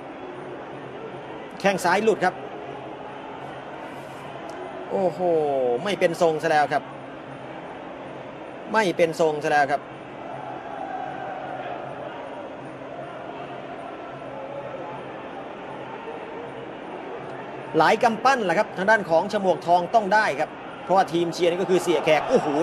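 A large crowd murmurs and cheers loudly in bursts.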